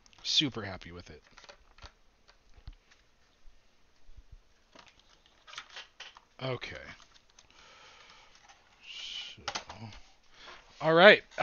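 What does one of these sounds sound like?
A plastic box rustles and clicks in hands.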